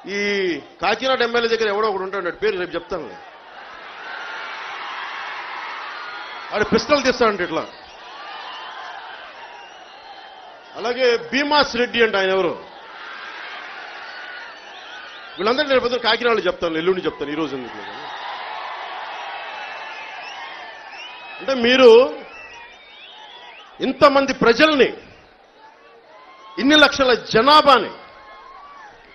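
A man shouts forcefully into a microphone over loudspeakers.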